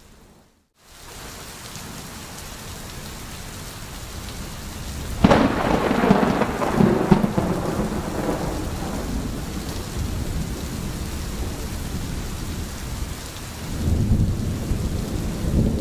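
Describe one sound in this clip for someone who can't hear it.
Rain patters steadily on the forest.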